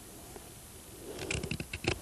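A knife shaves wood.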